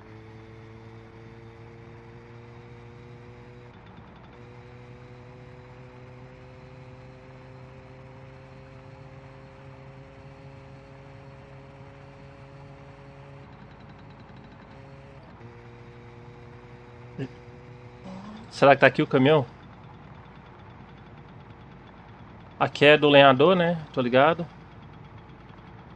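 A small motorbike engine hums steadily.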